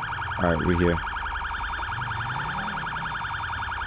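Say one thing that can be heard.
Tyres screech as a car skids and turns.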